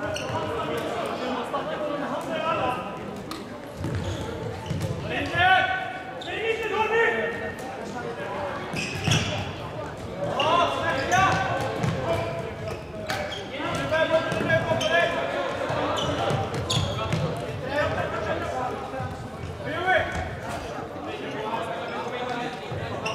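Plastic sticks clack against a ball.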